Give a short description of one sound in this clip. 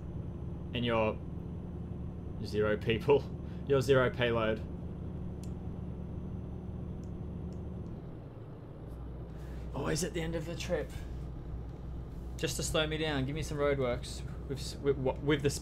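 A diesel truck engine drones while cruising.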